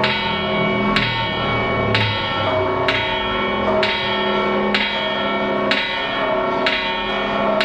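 A large bell rings with slow, steady strokes that ring on between them.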